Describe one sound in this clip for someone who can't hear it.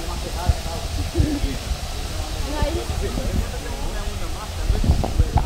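Water splashes as a swimmer moves her arms.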